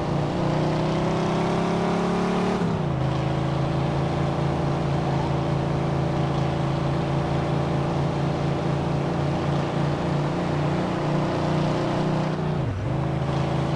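A car engine roars steadily at speed, dropping in pitch at each gear change.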